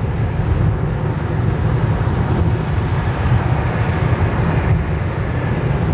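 A lorry roars past close by.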